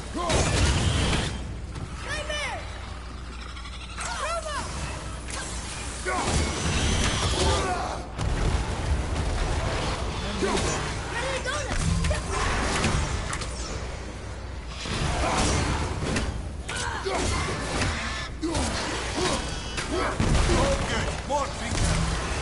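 Magical blasts burst with a crackling rush.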